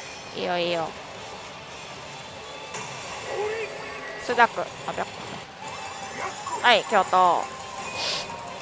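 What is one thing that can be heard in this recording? A gaming machine plays loud electronic sound effects and jingles.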